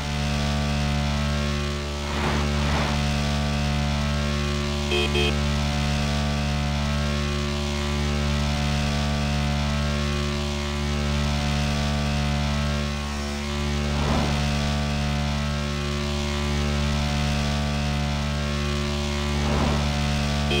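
A motorcycle engine drones steadily at high speed.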